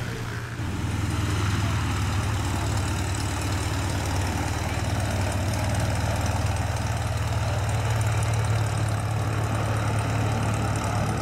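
A small propeller plane's engine drones steadily close by as the plane taxis past.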